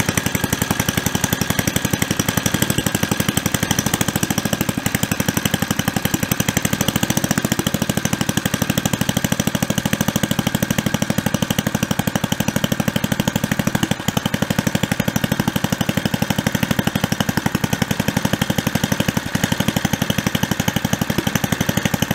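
A small petrol engine idles with a fast, steady chugging.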